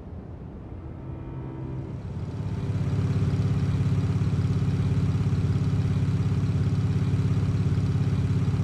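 A car engine hums steadily and grows louder as it approaches.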